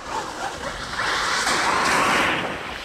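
A small electric motor whines as a toy car races closer.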